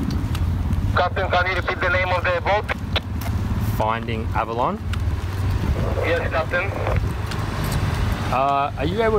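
A young man speaks into a handheld radio.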